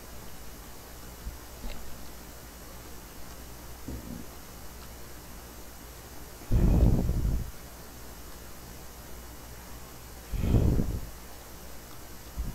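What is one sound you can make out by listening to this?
Footsteps tread slowly on dirt.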